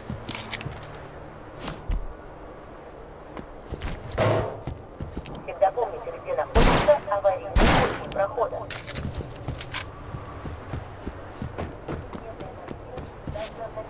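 Boots thud on dirt in quick footsteps.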